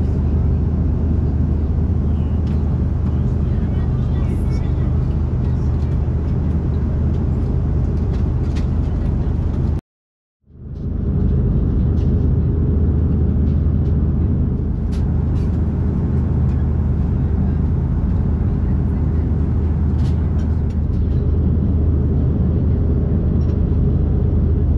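Jet engines roar as a steady, low drone inside an airliner cabin in flight.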